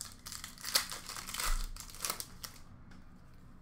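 Plastic card wrappers crinkle and rustle close by.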